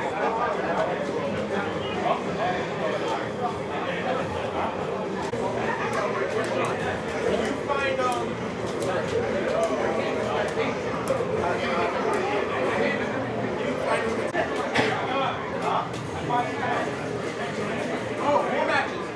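A crowd of people chatter.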